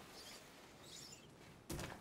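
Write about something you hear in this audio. Boots clank on metal ladder rungs.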